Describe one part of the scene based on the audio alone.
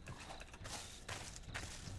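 Stone crunches as a pickaxe breaks it.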